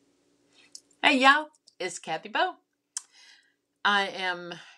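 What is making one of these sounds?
A middle-aged woman speaks warmly close to a microphone.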